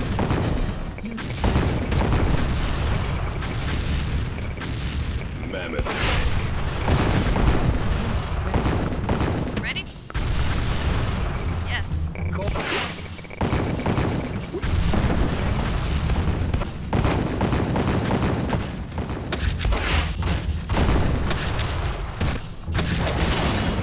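Explosions boom again and again.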